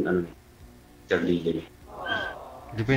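A man talks over an online call.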